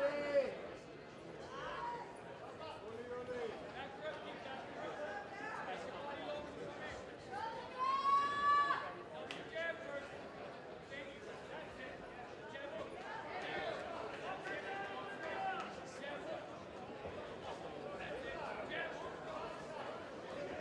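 A crowd of spectators shouts and cheers around a boxing ring.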